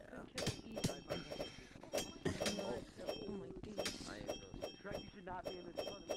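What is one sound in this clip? Swords clash and strike again and again in a fight.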